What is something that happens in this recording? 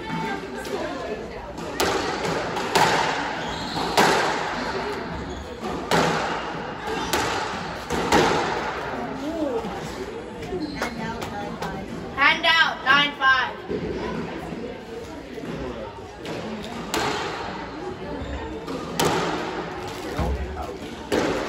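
A squash ball smacks against the court walls.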